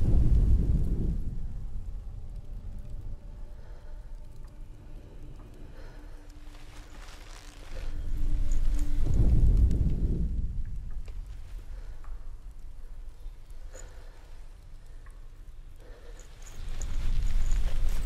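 Embers crackle softly nearby.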